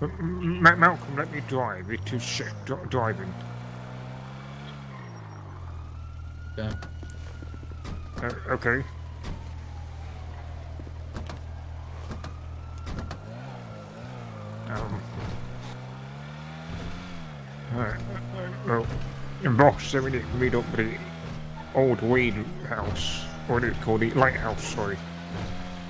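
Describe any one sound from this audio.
A car engine idles with a low hum and revs up now and then.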